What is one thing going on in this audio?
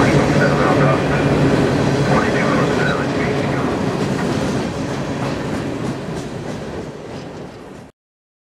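Freight cars rumble and clatter past close by, slowly fading.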